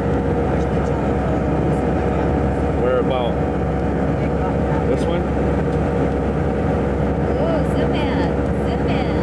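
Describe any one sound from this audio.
An airplane cabin hums with a steady, deep engine drone.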